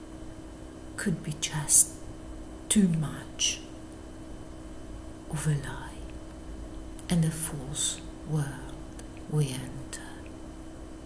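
A middle-aged woman speaks calmly and close by, in short phrases with pauses.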